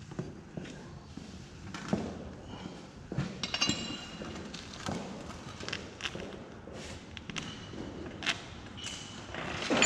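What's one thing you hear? An elderly man talks nearby.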